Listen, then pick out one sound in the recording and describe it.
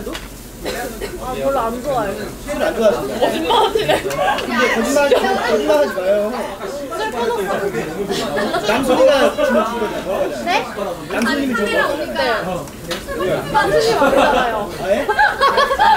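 Young women chat and laugh with animation, close by.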